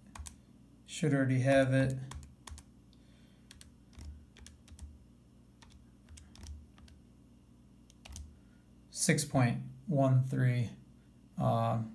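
Calculator buttons click under a finger.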